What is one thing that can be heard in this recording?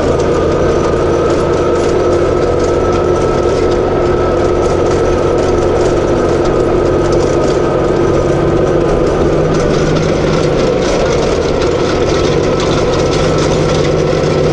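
A box blade scrapes and rustles through grass and soil.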